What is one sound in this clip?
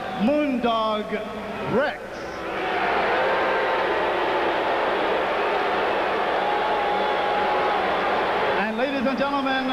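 A man announces loudly through a microphone, echoing in a large hall.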